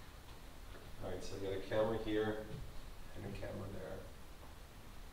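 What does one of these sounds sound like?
A man speaks briefly from across a large, echoing room.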